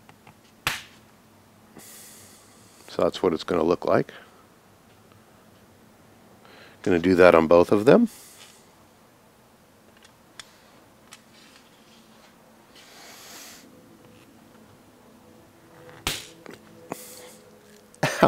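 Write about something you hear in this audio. Small metal parts click and tap against a hard surface.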